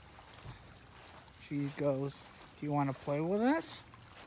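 A small stream trickles softly over stones.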